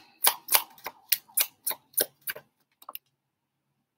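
Cards shuffle and tap together in quick bursts.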